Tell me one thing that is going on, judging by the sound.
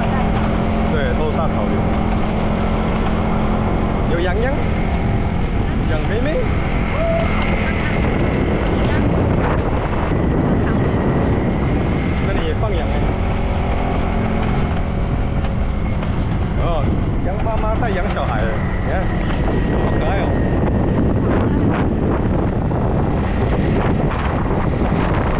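Wind buffets and rushes loudly past a moving rider.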